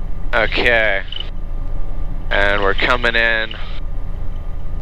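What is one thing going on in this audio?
A young man speaks over a headset intercom with animation.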